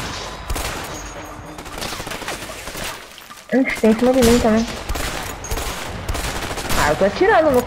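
Rifle shots crack in a video game.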